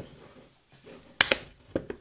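Plastic clamps click and knock as they are handled.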